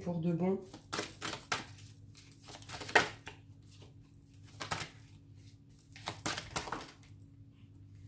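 A deck of cards is shuffled with quick soft snaps.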